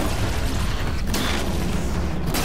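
A loud blast bursts and crackles.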